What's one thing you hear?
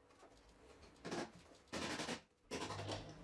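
A mallet taps on wood a few times.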